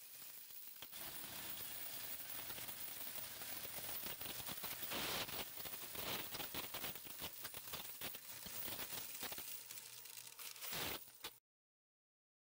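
Coins clatter and jingle rapidly through a machine.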